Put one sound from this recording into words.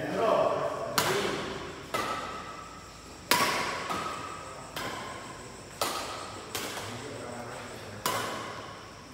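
Badminton rackets smack a shuttlecock back and forth, echoing in a large hall.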